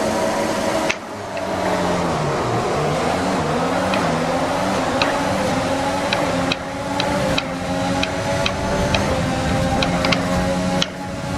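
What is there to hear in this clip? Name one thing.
A racing car engine roars and rises in pitch as it speeds up through the gears.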